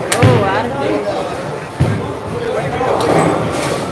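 Pins crash as a bowling ball strikes them.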